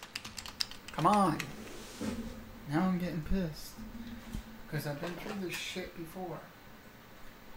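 A young man speaks casually into a microphone, close by.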